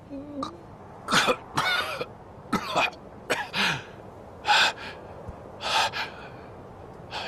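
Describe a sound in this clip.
A man groans and gasps in pain, close by.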